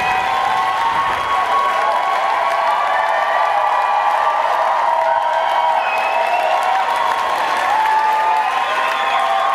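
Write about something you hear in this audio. A concert audience cheers in a large hall.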